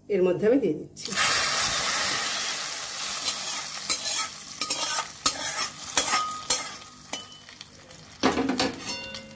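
Hot oil sizzles loudly as it is poured into a pot of food.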